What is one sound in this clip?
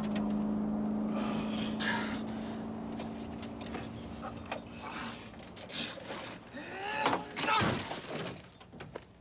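A man talks tensely at close range.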